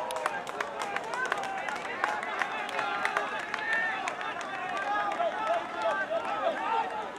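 Young men shout to each other from a distance across an open outdoor field.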